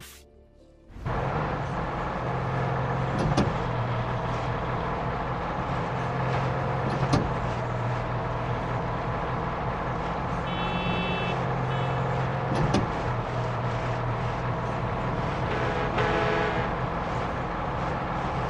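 A vehicle engine idles with a steady low rumble.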